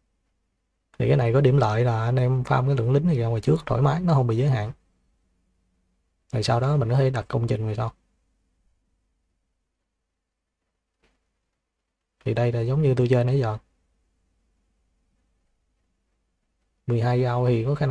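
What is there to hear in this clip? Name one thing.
A man talks calmly into a close microphone, in bursts with pauses.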